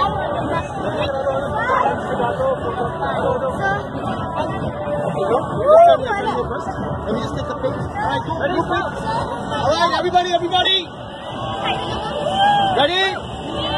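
Children chatter and call out excitedly nearby.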